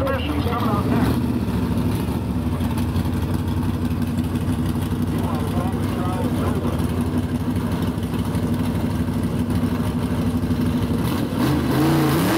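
A powerful car engine idles close by with a deep, steady rumble.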